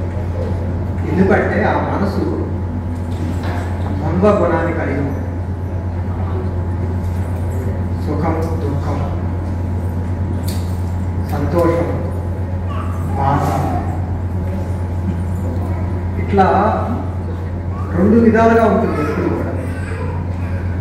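A middle-aged man speaks slowly and formally into a microphone, heard through loudspeakers.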